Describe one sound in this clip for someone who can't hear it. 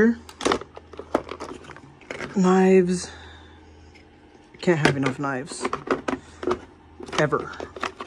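Pens and markers rattle as a hand rummages through them.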